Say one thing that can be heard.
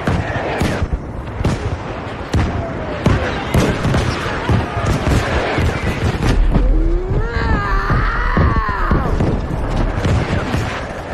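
Explosions boom close by.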